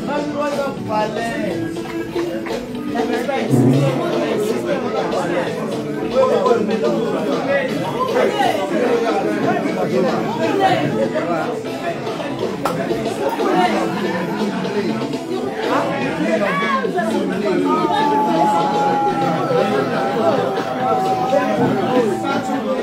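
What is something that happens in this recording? Several women and men talk and laugh loudly nearby, filling a lively room.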